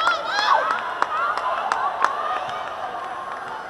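Young women shout excitedly in celebration.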